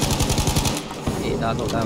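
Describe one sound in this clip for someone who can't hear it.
Rapid gunfire rattles at close range.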